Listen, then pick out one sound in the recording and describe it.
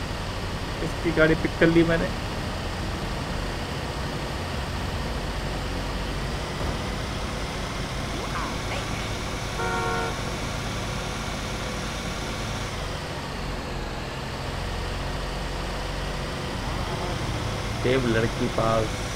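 A car engine hums steadily as a vehicle drives.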